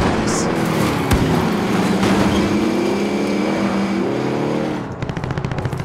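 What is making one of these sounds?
A vehicle engine roars and revs up and down.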